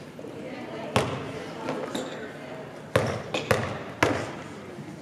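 A basketball bounces on a wooden floor with a hollow echo.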